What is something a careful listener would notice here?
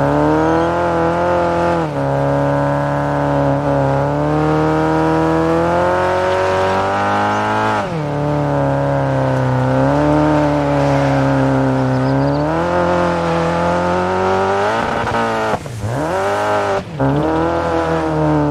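Gravel and dirt crunch under the car's tyres.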